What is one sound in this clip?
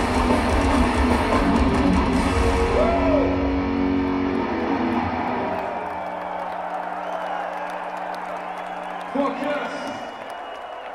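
A rock band plays loudly through big speakers in a large echoing arena.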